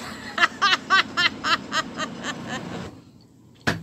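A woman laughs heartily close by.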